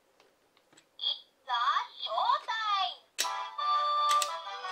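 Several kitchen timers beep at once in a loud electronic chorus.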